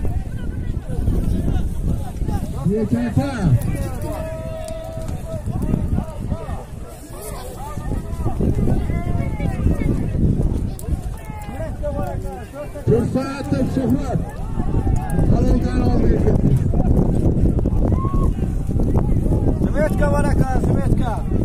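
A crowd of men shouts and chatters close by, outdoors.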